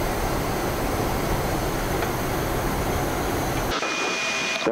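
An aircraft roars steadily in flight.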